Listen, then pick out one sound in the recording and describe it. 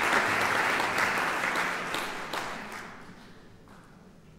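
An audience applauds in a hall, then the clapping fades away.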